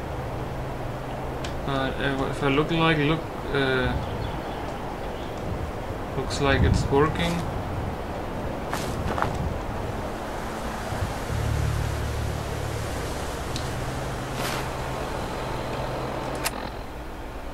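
Wind blows through trees outdoors.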